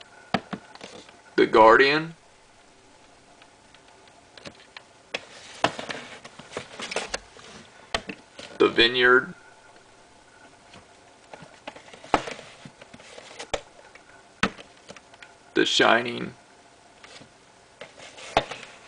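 Plastic tape cases clack and knock as they are set down on a shelf.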